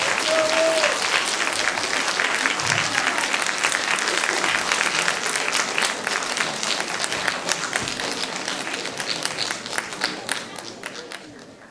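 An audience applauds in a large hall, the clapping slowly fading.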